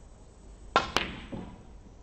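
Two snooker balls knock together with a crisp clack.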